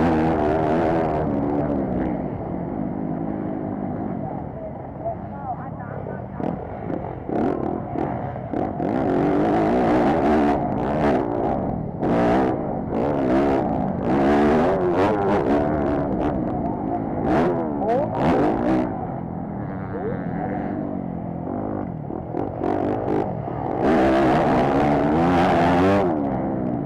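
A motocross bike engine roars up close, revving up and down through the gears.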